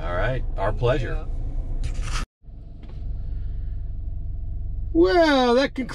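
A car engine hums low and steady.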